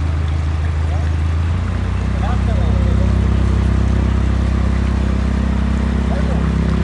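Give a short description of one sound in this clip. A boat engine hums low and steady.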